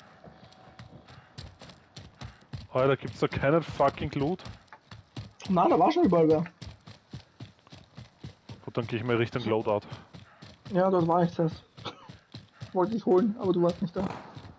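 Footsteps thud quickly over dirt and grass.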